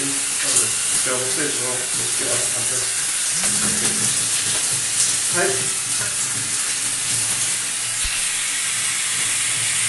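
Shower water sprays and splashes steadily.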